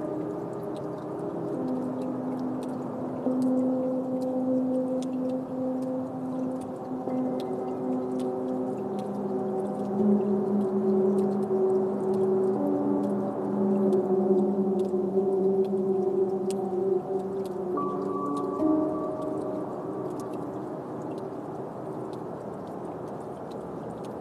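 Slow electronic synthesizer tones drone and shift in pitch.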